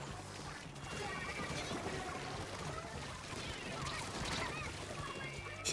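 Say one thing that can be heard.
Ink splatters and squelches in quick bursts from a video game.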